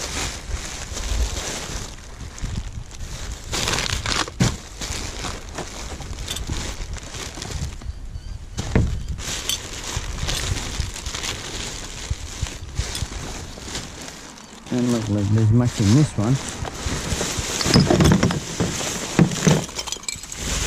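Plastic bags rustle and crinkle as gloved hands rummage through rubbish.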